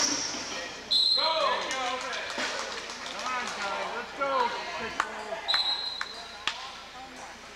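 A referee blows a whistle in short sharp blasts.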